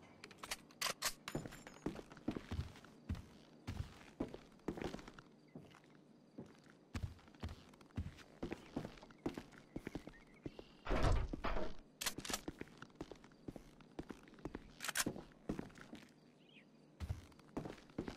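Footsteps thud on creaky wooden floorboards.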